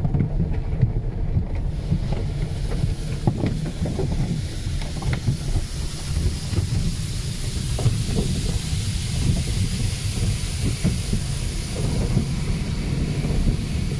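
Car wash brushes scrub against the windshield with a low rumble.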